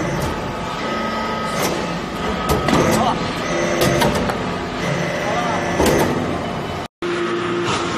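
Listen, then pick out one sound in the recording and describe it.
A hydraulic briquetting press clanks as it cycles.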